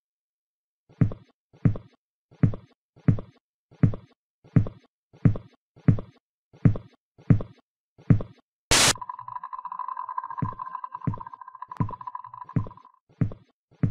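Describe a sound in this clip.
Slow, heavy footsteps thud on a hard floor.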